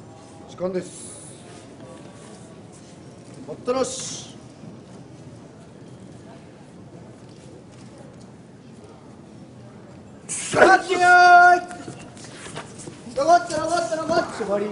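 A man calls out loudly in long, drawn-out cries in an echoing hall.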